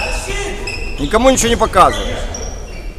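Sneakers squeak sharply on a hard floor in a large echoing hall.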